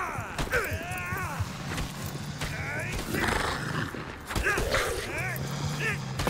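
Weapons strike bodies with sharp, repeated thuds.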